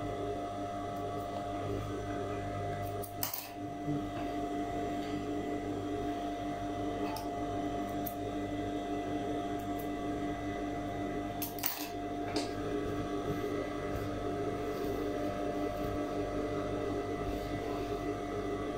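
An electric sewing machine motor hums steadily.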